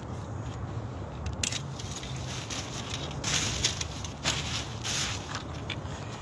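An umbrella's fabric flaps and rustles in the wind.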